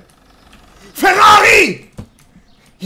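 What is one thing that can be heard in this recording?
A young man shouts loudly into a microphone.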